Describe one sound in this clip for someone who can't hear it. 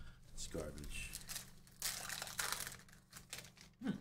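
A foil wrapper crinkles and tears as hands open a pack.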